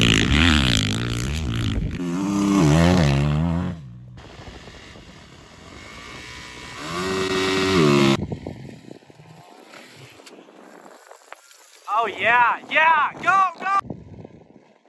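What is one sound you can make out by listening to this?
A dirt bike engine revs and roars, rising and falling in bursts.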